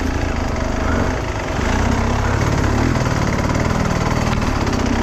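A dirt bike engine putters and revs loudly close by.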